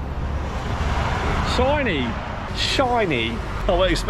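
A man talks cheerfully, close by.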